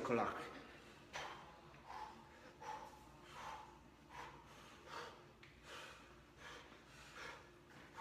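A man breathes hard in short, regular puffs.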